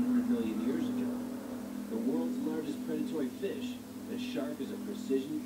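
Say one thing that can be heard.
A television plays a program's soundtrack nearby.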